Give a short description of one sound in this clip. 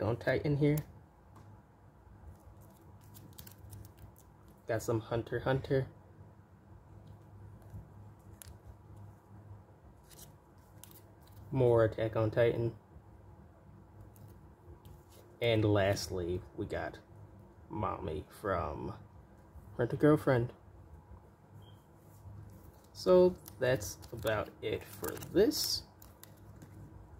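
Trading cards in plastic sleeves rustle and slide in hands.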